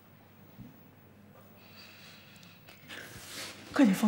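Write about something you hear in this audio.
A woman sobs and cries out in distress.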